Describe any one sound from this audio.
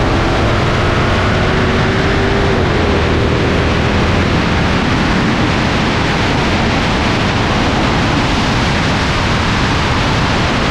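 A car engine roars loudly as it accelerates away.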